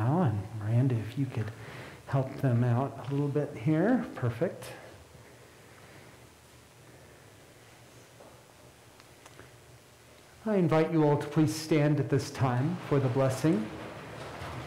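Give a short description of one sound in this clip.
An elderly man speaks calmly and solemnly in a reverberant hall.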